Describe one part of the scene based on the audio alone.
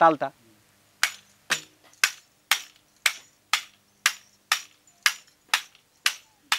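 A stick hung with small bells is struck in a steady beat, jingling.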